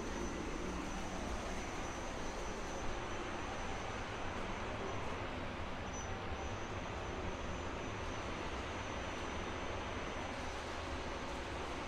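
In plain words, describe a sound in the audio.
Machines hum steadily in a large hall.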